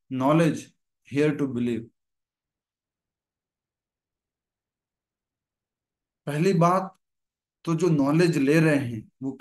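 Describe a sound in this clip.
A man speaks with animation into a microphone on an online call, pausing between phrases.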